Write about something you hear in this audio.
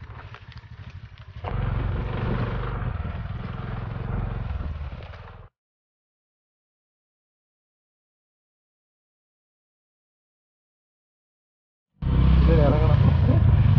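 A motorbike engine rumbles while riding over a bumpy dirt track.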